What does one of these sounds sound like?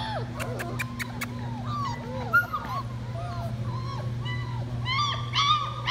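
Several puppies whine and yelp in high, wavering cries.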